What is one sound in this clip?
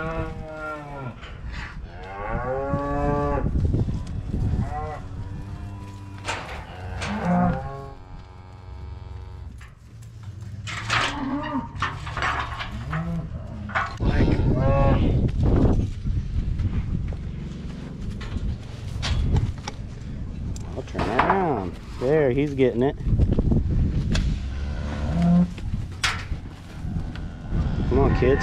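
Cattle hooves shuffle and thud on dirt.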